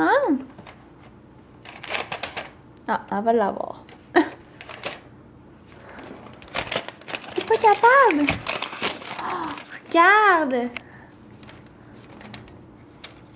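A cat rummages in a paper bag, the paper rustling and crinkling.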